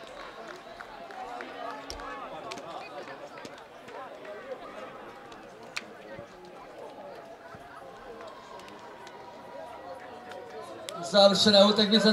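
Young players talk and call out faintly across an open field.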